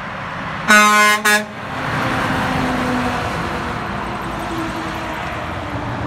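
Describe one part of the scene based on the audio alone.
A heavy dump truck roars past close by.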